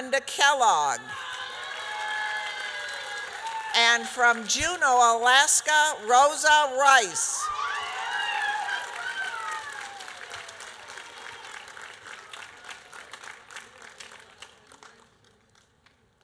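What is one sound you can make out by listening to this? A crowd claps in a large echoing hall.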